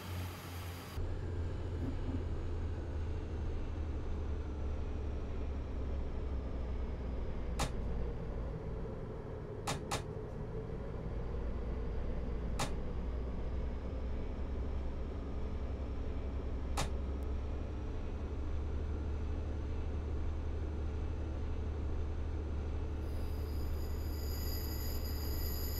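A train's motor hums low and steady.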